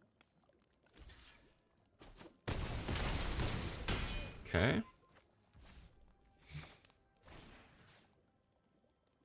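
Digital game effects whoosh and boom.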